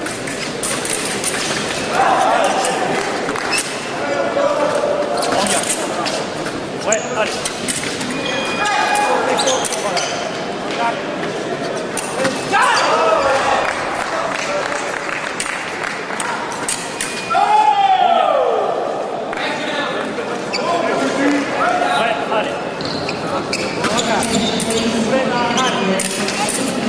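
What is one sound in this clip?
Fencers' shoes squeak and thump on the floor.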